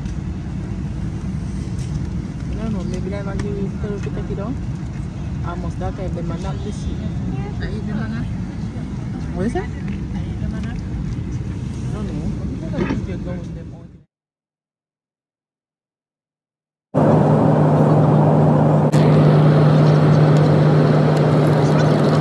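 A steady aircraft cabin hum drones.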